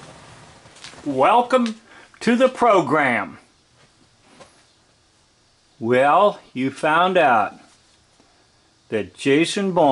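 An elderly man speaks slowly and calmly, close by.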